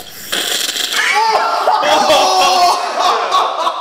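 A young man shouts and laughs excitedly close by.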